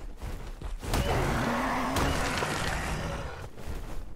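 A creature cries out in pain.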